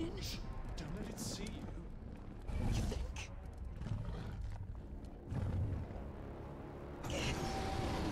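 A huge dragon roars with a deep, rumbling growl.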